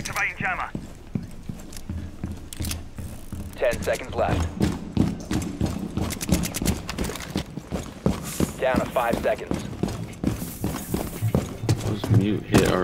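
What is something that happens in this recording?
Footsteps thud quickly on hard floors and stairs.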